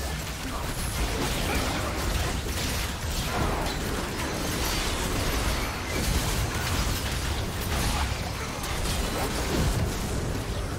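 Spell blasts and weapon strikes crackle and boom in a busy video game battle.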